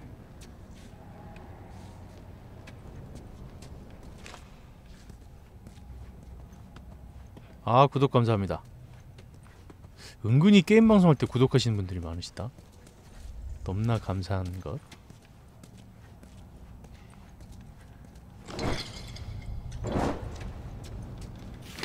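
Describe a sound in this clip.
Footsteps walk on a hard floor.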